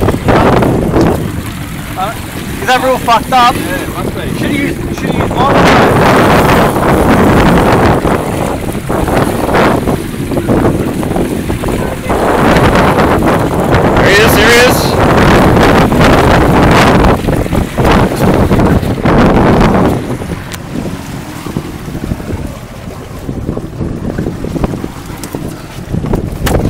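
Waves splash against a small boat, outdoors in wind.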